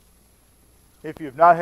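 A man starts speaking through a microphone.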